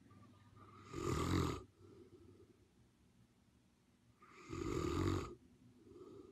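A dog huffs a loud breath through its nose close by.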